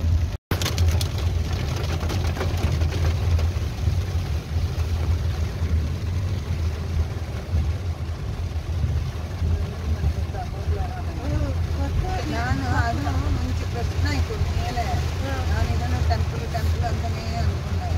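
A car engine hums low, heard from inside the car.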